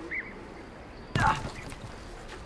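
Light footsteps land on a wooden boat.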